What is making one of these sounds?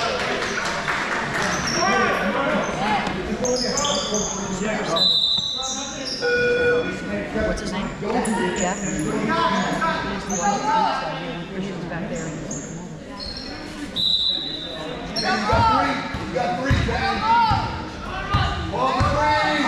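A crowd of spectators chatters and calls out in a large echoing hall.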